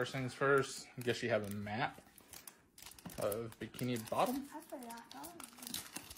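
Paper crinkles as a booklet is pulled out.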